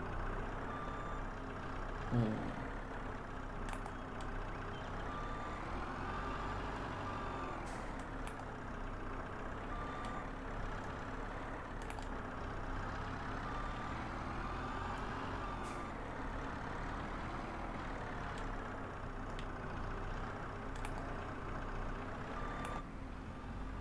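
A tractor engine hums steadily, rising and falling in pitch.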